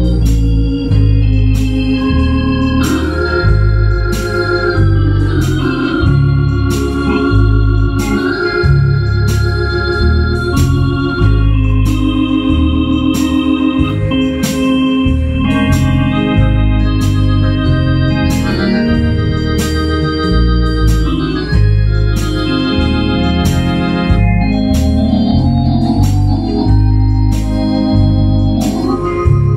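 A man plays a melody on an electronic keyboard.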